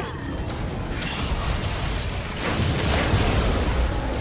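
Magic blasts burst loudly.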